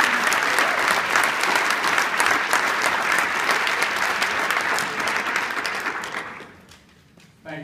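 An audience applauds loudly in a large hall and then fades.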